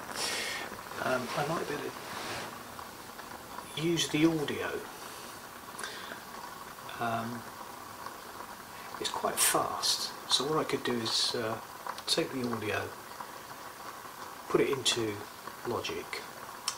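A middle-aged man talks calmly and with animation.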